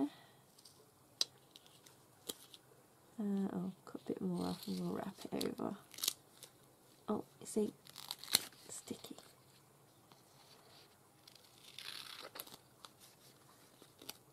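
A strip of paper rustles and slides as it is handled.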